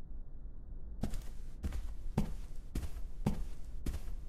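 Footsteps thud on a hard floor at a walking pace.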